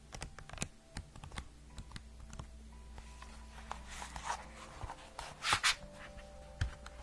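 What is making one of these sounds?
Fingernails tap on a book's cover close to a microphone.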